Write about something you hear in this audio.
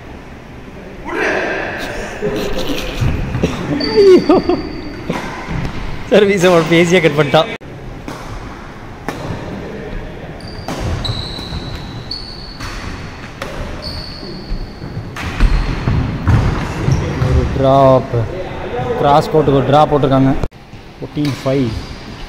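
Racquets smack a shuttlecock back and forth in a large echoing hall.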